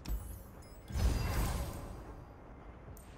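A soft whoosh plays as a game menu opens.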